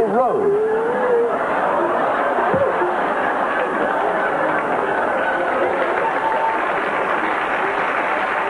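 A group of men and women laugh and cheer.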